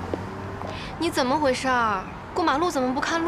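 A young woman asks a question in a worried voice, close by.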